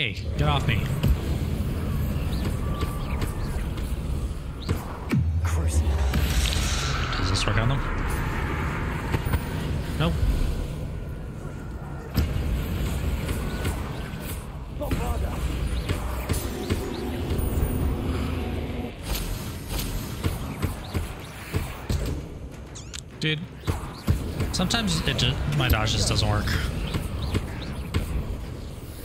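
Magic spells crackle and burst with loud whooshes and blasts.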